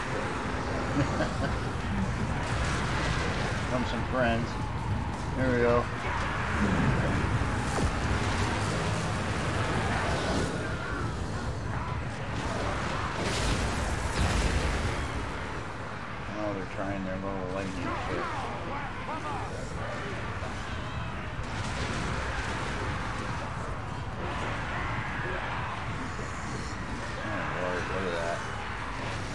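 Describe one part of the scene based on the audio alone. Soldiers clash and shout in a noisy battle.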